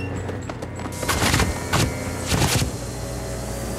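A vacuum cleaner whooshes loudly as it sucks.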